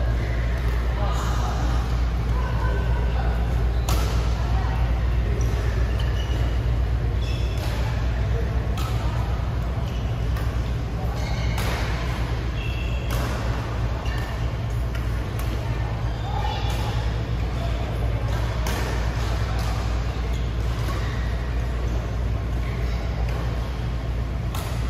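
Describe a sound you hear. Badminton rackets strike a shuttlecock again and again in a large echoing hall.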